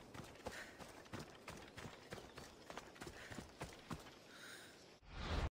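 Footsteps rustle through grass at a steady pace.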